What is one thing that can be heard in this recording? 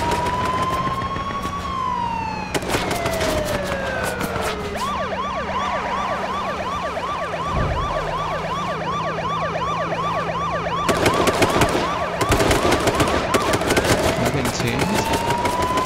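A police siren wails, gliding up and down and then switching to a fast warbling yelp.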